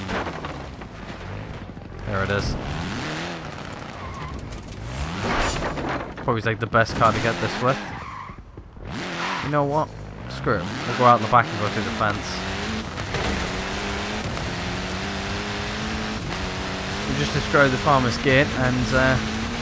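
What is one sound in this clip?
A rally car engine roars and revs, climbing steadily as it speeds up.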